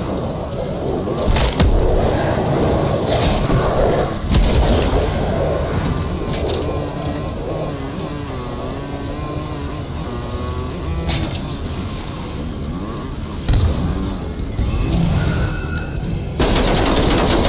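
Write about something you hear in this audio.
A motorbike engine rumbles steadily.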